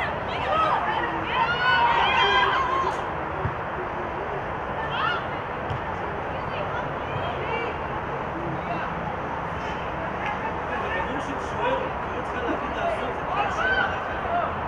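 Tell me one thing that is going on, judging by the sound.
Players and spectators shout and call out across an open outdoor pitch.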